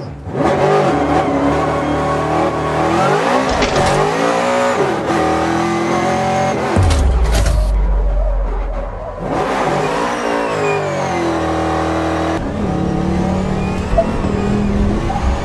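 A powerful car engine roars and revs up and down.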